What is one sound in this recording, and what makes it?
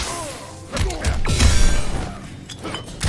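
Flames burst with a loud roar.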